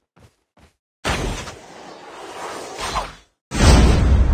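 A rushing whoosh of air sweeps past.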